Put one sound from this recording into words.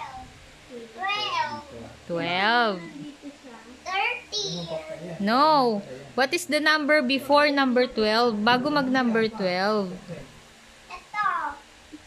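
A young girl speaks loudly and playfully close by.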